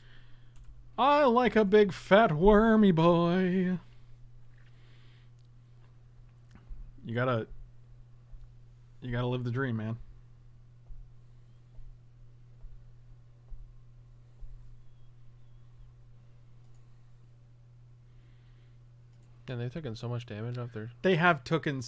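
An adult man talks in short bursts close to a microphone.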